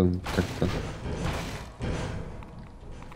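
Footsteps thud on a wooden ladder.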